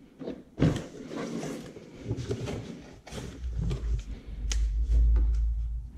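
Metal parts clank and rattle as they are handled.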